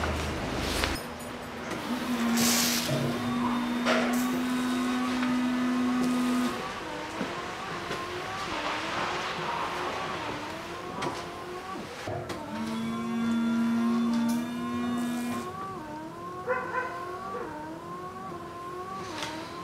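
A rear wiper squeaks rhythmically as it sweeps back and forth across glass.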